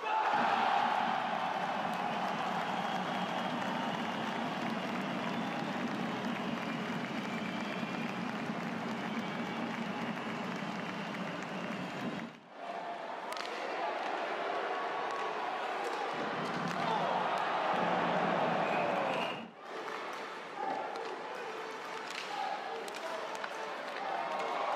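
A crowd roars and cheers in a large echoing arena.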